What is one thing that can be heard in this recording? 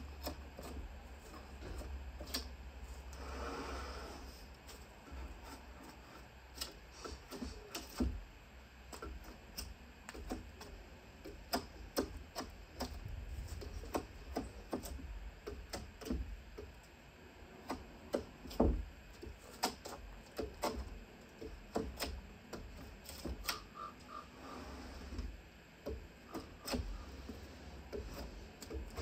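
A hammer taps sharply on wood, again and again.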